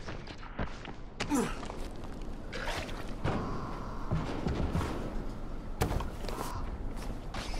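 Footsteps thud quickly on a hard roof.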